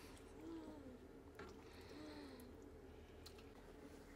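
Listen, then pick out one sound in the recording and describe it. A spoon scrapes food from a pan into a bowl.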